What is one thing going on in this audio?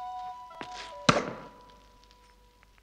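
An axe thuds hard into a wooden post, ringing briefly.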